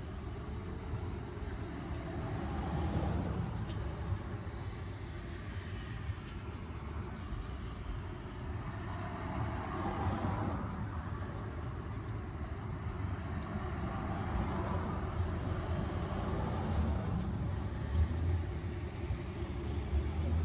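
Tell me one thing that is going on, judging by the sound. A knife scrapes on shoe leather.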